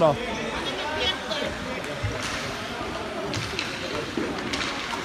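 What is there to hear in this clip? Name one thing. Hockey sticks clack on the ice.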